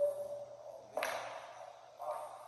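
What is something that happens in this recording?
Pool balls clack together on a table.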